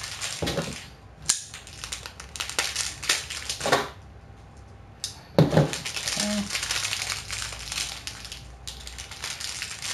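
Plastic wrapping rustles and crinkles close by as hands handle it.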